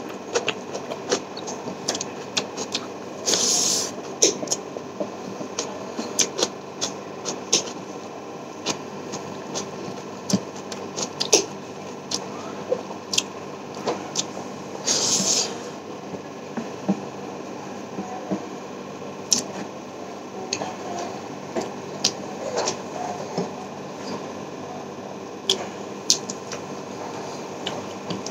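Fingers squelch and mix moist food.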